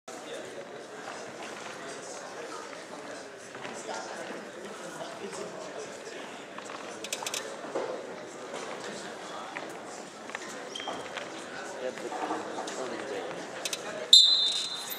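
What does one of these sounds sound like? Spectators chatter in a large echoing hall.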